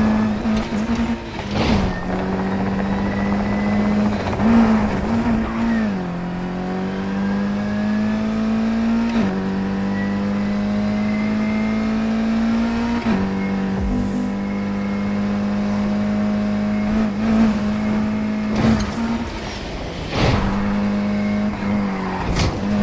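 A sports car engine roars at high revs, rising in pitch between gear shifts.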